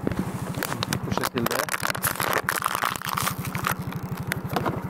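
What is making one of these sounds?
A plastic water bottle crinkles and crackles.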